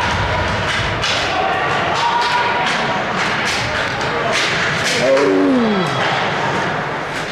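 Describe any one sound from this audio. Hockey sticks click against a puck.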